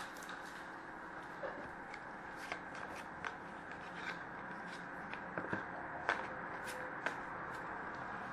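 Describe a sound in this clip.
Paper wrappers crinkle and rustle as hands handle cards.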